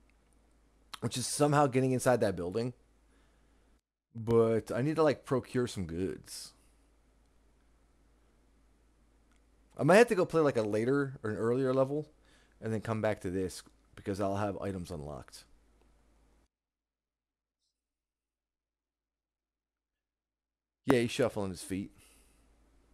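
A man talks casually into a close microphone, in bursts with pauses.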